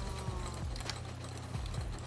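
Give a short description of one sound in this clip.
A pig grunts.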